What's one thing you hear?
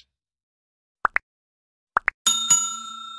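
A finger taps a button with a click.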